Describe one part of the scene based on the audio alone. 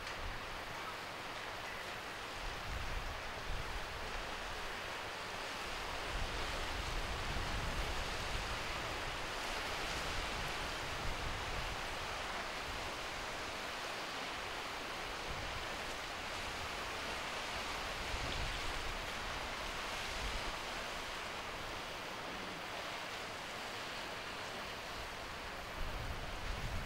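Waves wash against rocks along the shore.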